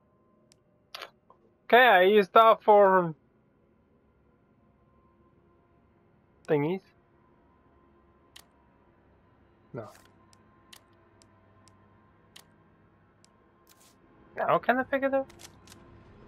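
Short electronic tones chime as menu selections change.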